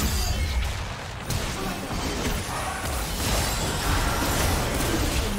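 Magic spells whoosh and crackle in a fast battle.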